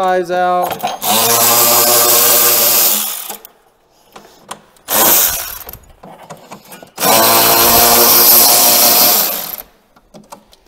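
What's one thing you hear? A cordless power driver whirs in bursts as it turns screws.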